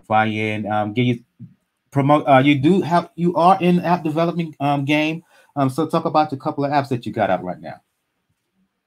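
A man talks with animation over an online call.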